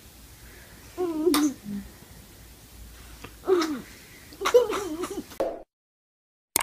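A baby giggles happily close by.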